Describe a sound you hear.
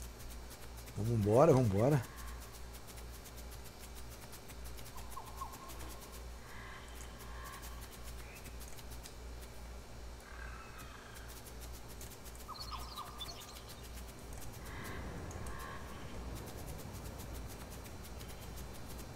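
Soft footsteps patter through grass.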